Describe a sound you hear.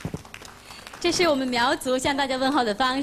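Two women sing into microphones.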